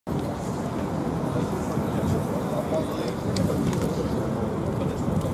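Young men and women talk and murmur nearby outdoors.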